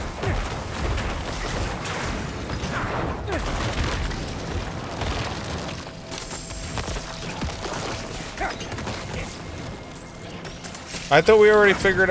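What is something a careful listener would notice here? Game combat sounds clash and thud as spells hit enemies.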